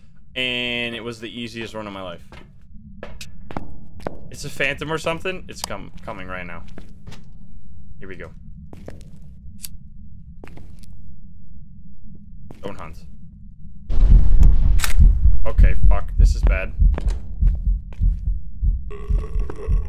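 A young man talks casually into a close microphone, with pauses.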